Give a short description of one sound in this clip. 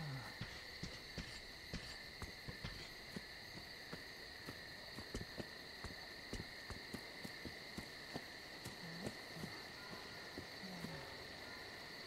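Footsteps crunch through grass and brush outdoors.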